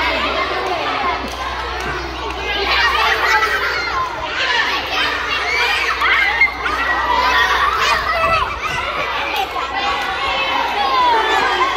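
Children chatter and shout nearby outdoors.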